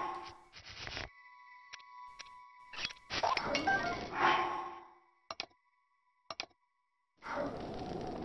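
Soft menu chimes and clicks sound in quick succession.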